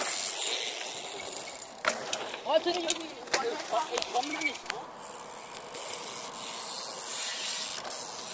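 A bike's tyres thud onto packed dirt after a jump.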